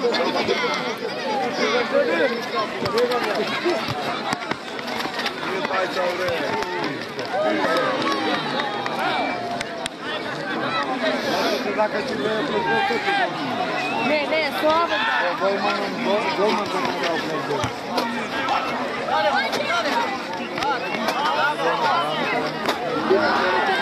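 A large crowd of spectators chatters and shouts outdoors.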